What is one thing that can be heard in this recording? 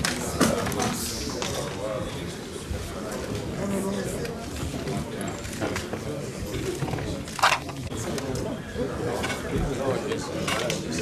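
A crowd of men chatter and murmur in a large room.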